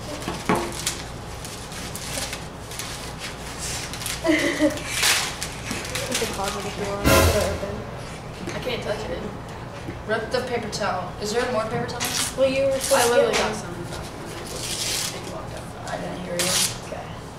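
Paper crinkles as a chip bag is opened.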